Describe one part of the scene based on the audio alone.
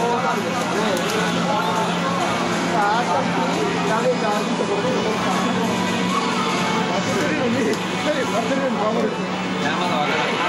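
Video game music plays through a loudspeaker.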